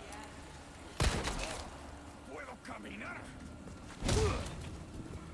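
A pistol fires loud, sharp shots.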